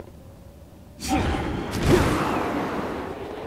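A burst of magical whooshing swells up and rushes loudly.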